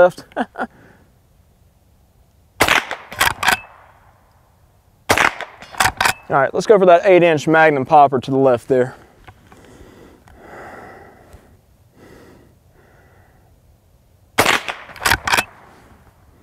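Gunshots crack outdoors in quick bursts, each echoing briefly.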